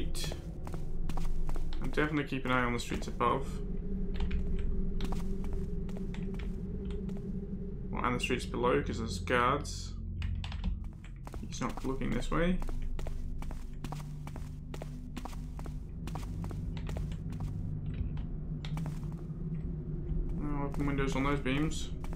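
Footsteps tread steadily on cobblestones.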